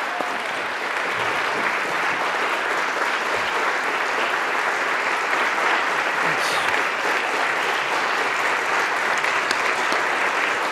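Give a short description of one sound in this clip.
A large crowd claps steadily in a big echoing hall.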